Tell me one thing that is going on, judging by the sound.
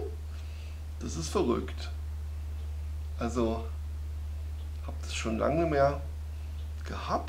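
A man speaks in short, relaxed bursts close by.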